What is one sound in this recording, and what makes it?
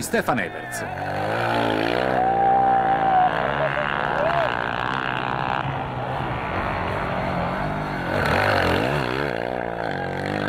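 A dirt bike engine revs loudly, rising and falling.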